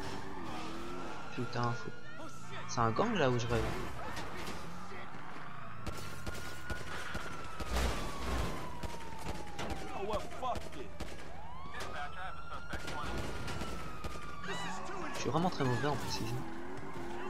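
A police siren wails and rises and falls.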